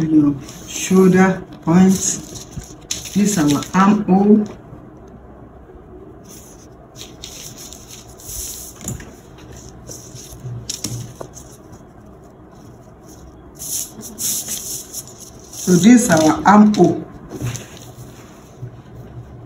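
A marker pen scratches across paper.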